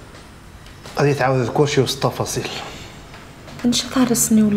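A woman speaks quietly and seriously, close by.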